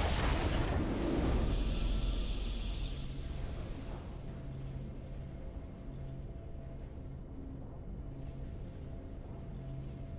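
A triumphant fanfare plays and settles into a low hum.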